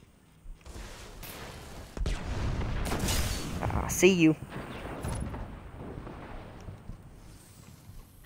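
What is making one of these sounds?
Rifle shots ring out in sharp bursts.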